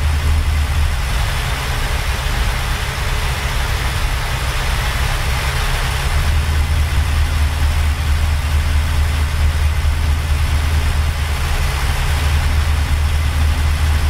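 A truck engine hums with a deep, steady drone.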